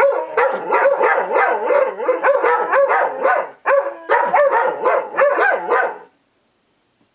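A dog howls loudly and close by.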